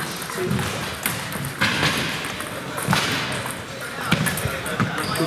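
A table tennis ball clicks back and forth off paddles and a table, echoing in a large hall.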